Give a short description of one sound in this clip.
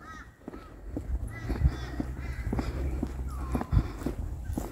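Footsteps fall on a paved path.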